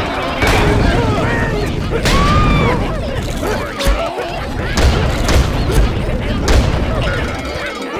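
Cartoon explosions boom loudly several times.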